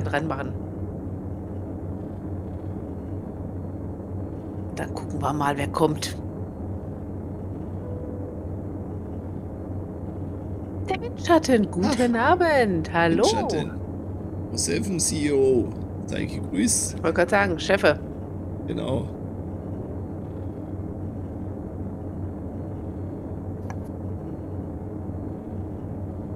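An aircraft engine hums steadily.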